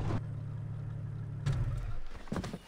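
A car engine hums steadily and then cuts off.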